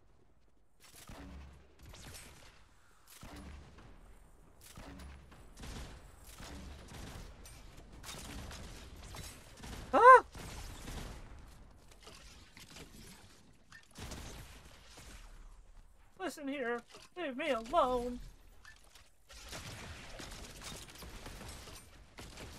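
Video game gunfire and explosions pop in quick bursts.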